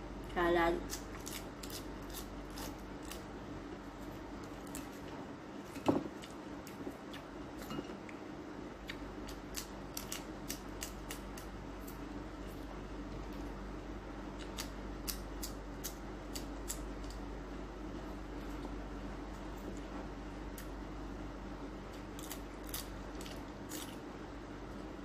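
Crisp snacks crunch as a young woman chews them.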